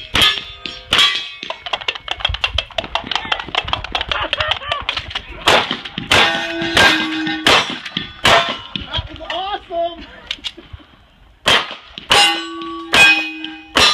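Gunshots crack loudly outdoors, one after another.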